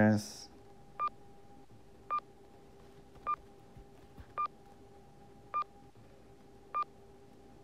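An elevator chime beeps briefly as each floor passes.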